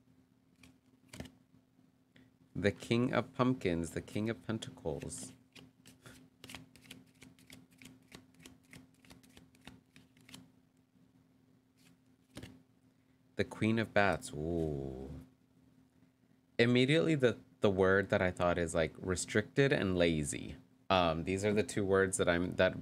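A playing card is laid down on a table with a soft tap.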